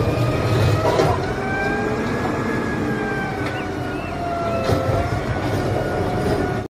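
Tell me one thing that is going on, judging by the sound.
A hydraulic arm whines as it lifts a bin.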